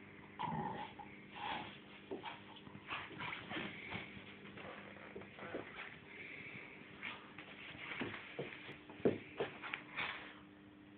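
A small dog rolls and scuffles on a carpet.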